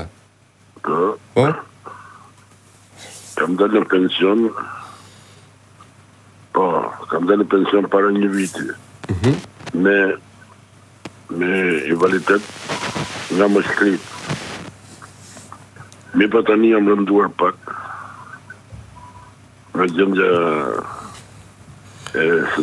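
A man speaks with animation close to a microphone, in bursts with pauses.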